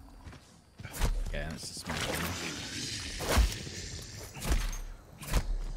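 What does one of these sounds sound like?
Game impacts thud sharply.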